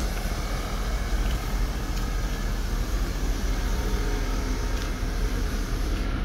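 A petrol car engine idles.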